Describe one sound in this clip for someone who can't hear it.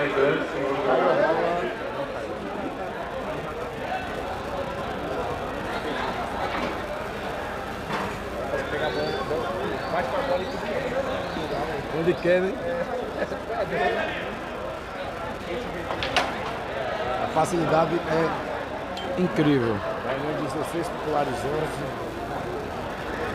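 A crowd of men chatters and murmurs nearby.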